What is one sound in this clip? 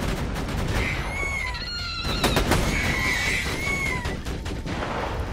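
Flying creatures screech.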